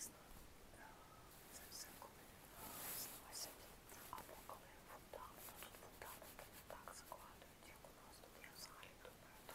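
A young woman whispers softly and closely into a microphone.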